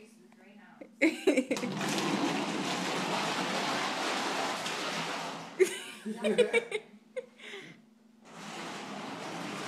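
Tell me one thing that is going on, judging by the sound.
A small wheeled cart rattles as it rolls across a hard floor.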